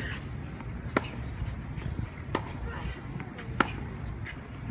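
A tennis ball is struck sharply by a racket.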